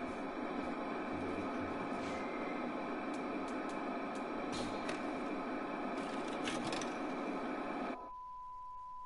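A television hisses with loud static.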